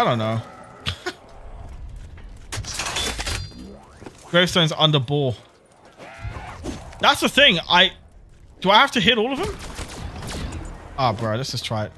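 Gunfire and explosions crack and boom in a video game.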